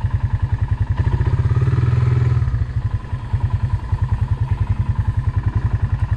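A small engine pump chugs in a fast, steady rhythm.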